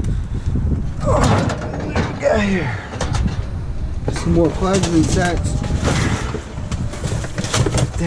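Cardboard boxes and plastic bags rustle as they are handled.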